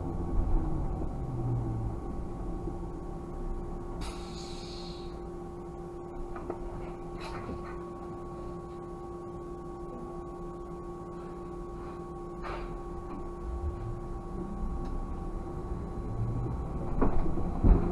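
A car engine hums steadily from inside the car, muffled by the closed cabin.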